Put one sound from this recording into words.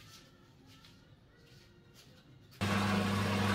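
Dry wood pieces knock and scrape softly as they are handled.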